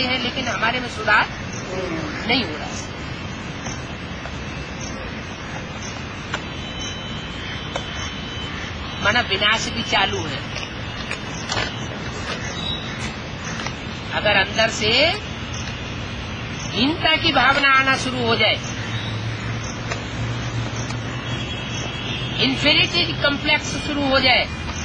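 An elderly man speaks calmly nearby, in short bursts with long pauses.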